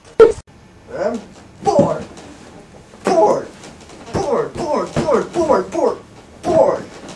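A man yells and wails in a tantrum.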